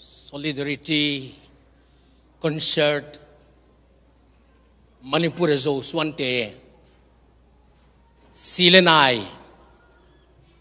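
An older man speaks slowly and deliberately into a microphone, heard over loudspeakers in a large hall.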